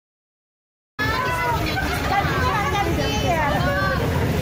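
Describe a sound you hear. A crowd of women talk and shout loudly at close range.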